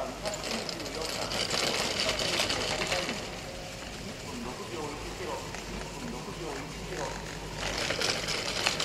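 Skis carve and scrape across hard snow, hissing loudly through each turn.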